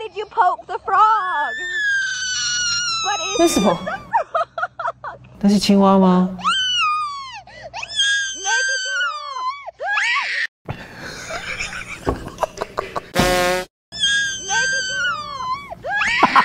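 A young boy screams and wails shrilly.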